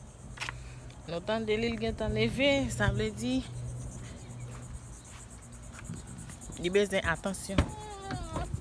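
A young woman talks close by, calmly.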